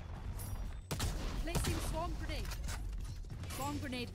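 Blades whoosh through the air.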